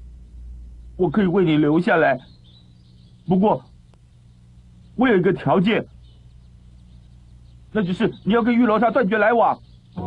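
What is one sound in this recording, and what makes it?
A young man speaks anxiously, close by.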